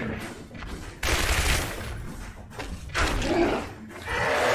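A gun fires several loud shots.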